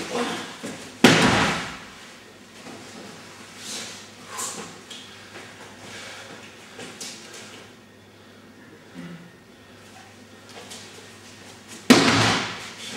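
A body thuds heavily onto a mat in an echoing hall.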